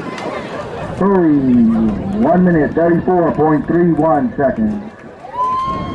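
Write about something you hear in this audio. A woman nearby shouts and cheers loudly for a runner.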